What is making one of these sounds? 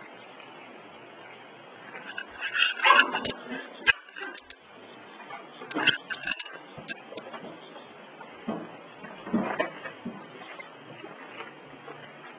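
Small paws patter and scuff on stone and wood chips.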